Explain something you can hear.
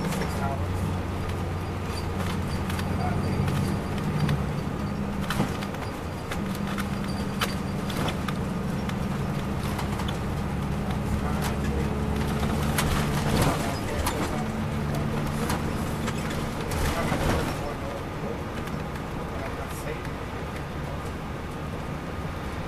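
Road noise rumbles inside a moving coach.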